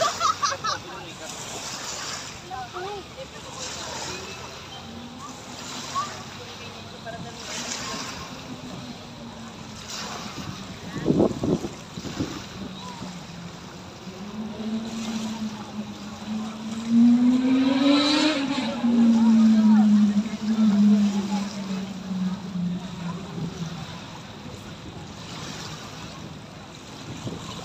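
Small waves lap and splash against the shore.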